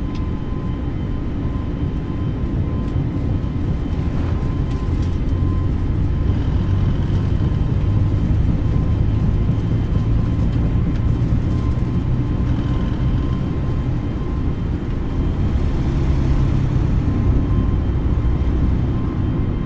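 Jet engines roar steadily as an airliner speeds along.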